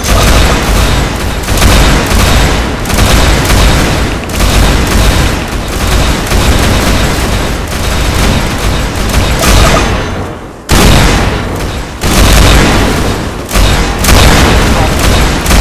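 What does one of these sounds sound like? Explosions and rapid gunfire crackle nonstop.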